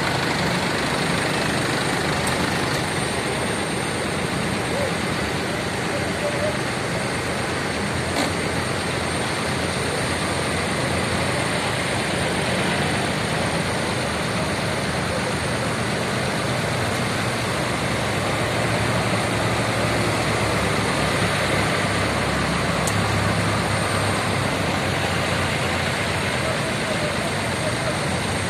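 Tractor engines rumble and chug steadily close by.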